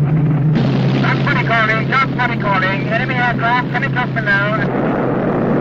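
A man speaks calmly through a radio microphone.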